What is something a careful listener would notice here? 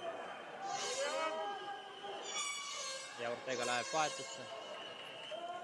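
A crowd murmurs in an echoing hall.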